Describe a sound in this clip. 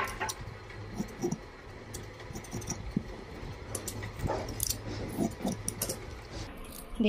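Scissors snip through cloth.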